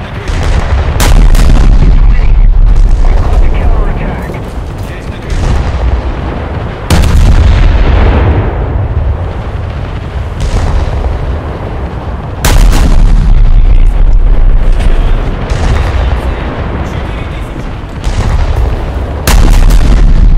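A warship's guns fire in loud booming blasts.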